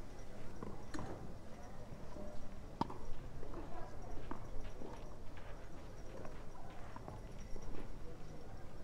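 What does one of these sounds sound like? A tennis ball bounces on a clay court.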